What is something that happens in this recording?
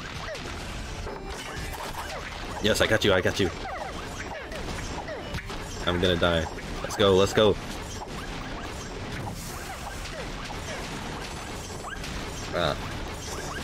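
Cartoonish blasts and sword clashes sound in quick bursts.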